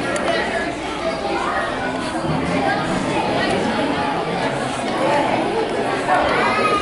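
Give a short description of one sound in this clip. A crowd of men and women chatters at once in a large echoing room.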